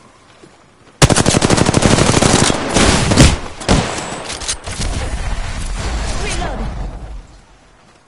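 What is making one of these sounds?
An automatic rifle fires rapid, loud bursts of shots.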